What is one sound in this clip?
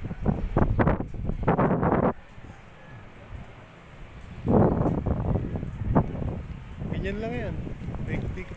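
Wind gusts roar outdoors in bursts.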